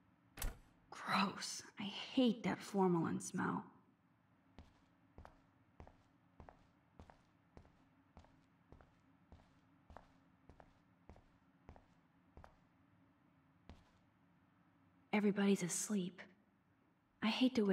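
A young woman speaks softly to herself, close by.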